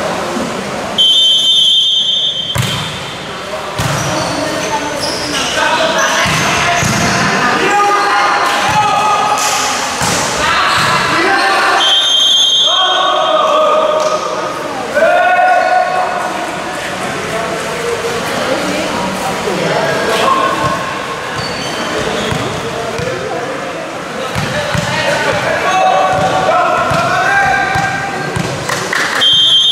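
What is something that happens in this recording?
A referee's whistle blows sharply in a large echoing hall.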